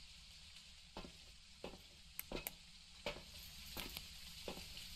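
Footsteps clank on a metal floor.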